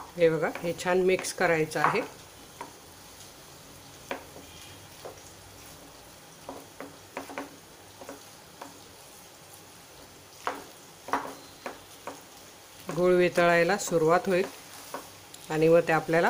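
A spatula scrapes and taps against a pan.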